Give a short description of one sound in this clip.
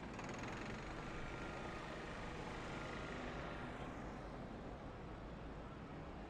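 A pickup truck drives slowly past.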